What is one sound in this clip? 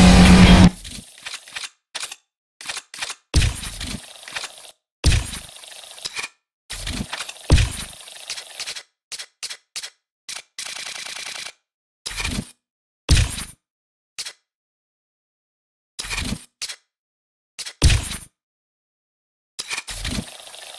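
Short electronic beeps and clicks sound in quick bursts.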